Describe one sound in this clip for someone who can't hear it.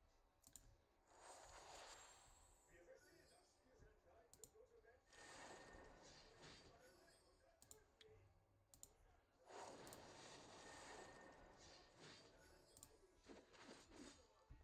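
Game spells whoosh and crackle in bursts.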